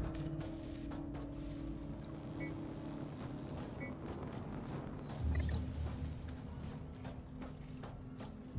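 Footsteps thud on a hard metal floor.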